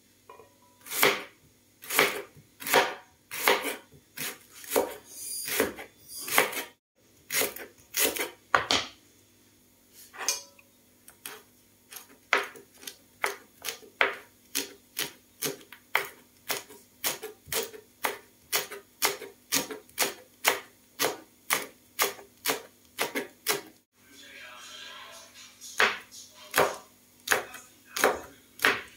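A chef's knife chops on a plastic cutting board.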